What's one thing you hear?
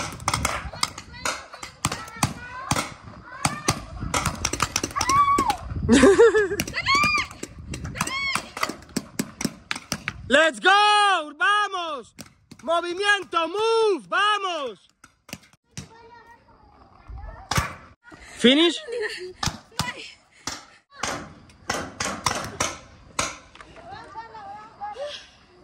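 Paintball markers fire in rapid popping bursts outdoors.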